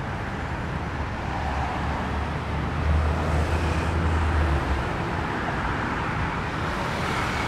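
Traffic rolls past on a nearby street.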